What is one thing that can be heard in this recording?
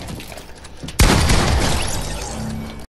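A loud blast bursts and roars briefly.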